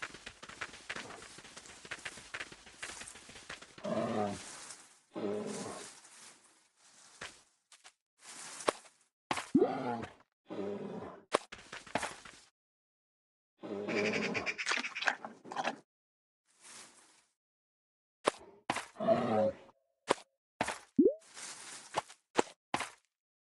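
A tablet game plays short chimes and sound effects.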